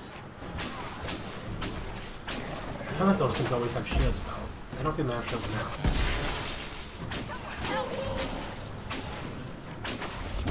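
Magic spells crackle and zap in quick bursts.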